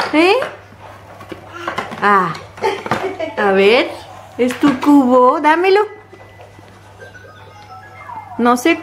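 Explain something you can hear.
A toddler babbles and squeals up close.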